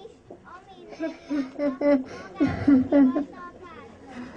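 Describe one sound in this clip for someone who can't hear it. A young girl speaks loudly through a microphone.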